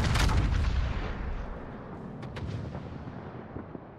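Heavy naval guns fire with a deep boom that rumbles away.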